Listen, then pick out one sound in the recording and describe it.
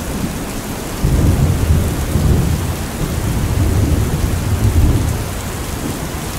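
Thunder rumbles low in the distance.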